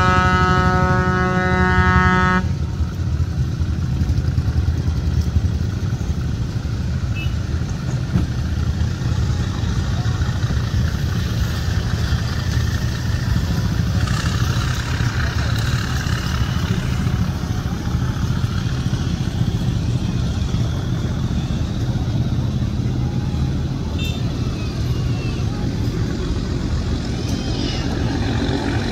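Water washes against a moving boat's hull.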